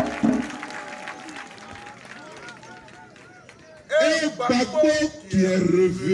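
A man speaks loudly into a microphone outdoors, his voice carried through a loudspeaker.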